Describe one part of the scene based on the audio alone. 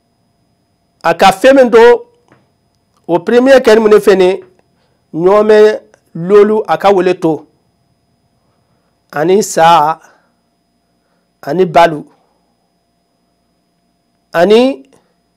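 A man speaks into a close microphone in short, measured phrases with pauses between them.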